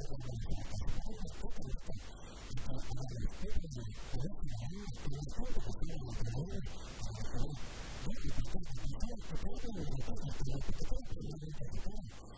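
A middle-aged man speaks with animation into a handheld microphone.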